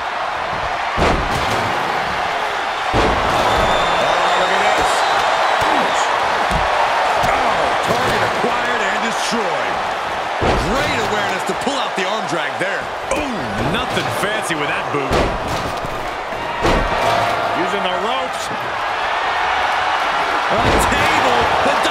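Heavy thuds of bodies slamming onto a wrestling mat ring out now and then.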